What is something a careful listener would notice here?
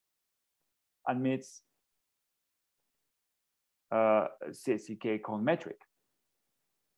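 A man speaks calmly through a microphone, as if lecturing over an online call.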